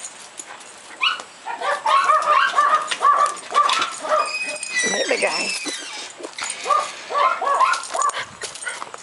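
A small dog whines and yelps excitedly close by.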